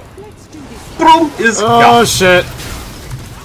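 A man speaks with excitement close to a microphone.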